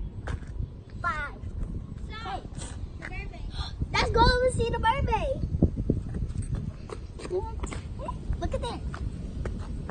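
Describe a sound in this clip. A young girl talks excitedly nearby.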